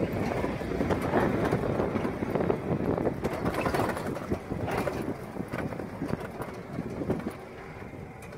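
A vehicle engine rumbles as it drives over rough ground.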